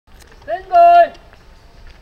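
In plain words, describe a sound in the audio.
A man calls out a short command.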